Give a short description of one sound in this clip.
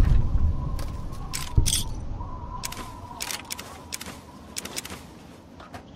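Small items clink softly as they are picked up one after another.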